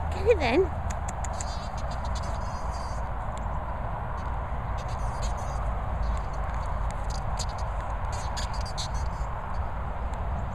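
A plastic bottle crackles as a dog bites and chews it.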